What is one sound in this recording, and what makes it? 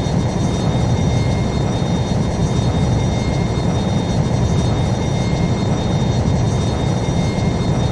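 A fighter jet's engine roars steadily.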